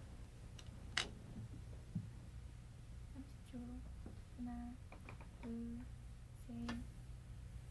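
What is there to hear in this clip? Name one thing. A stone clicks sharply onto a wooden board.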